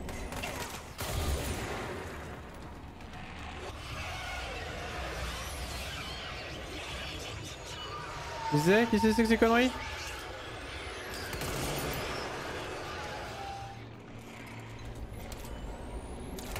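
Gunfire and explosions crash in a video game.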